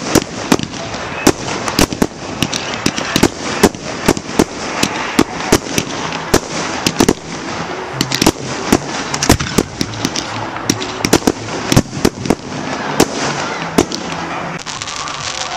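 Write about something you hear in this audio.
Fireworks crackle with a fizzing hiss.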